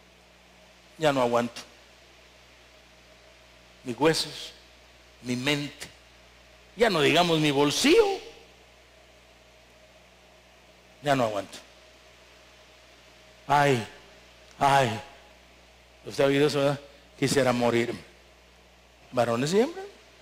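A middle-aged man preaches through a microphone in short, emphatic bursts with long pauses, echoing in a large hall.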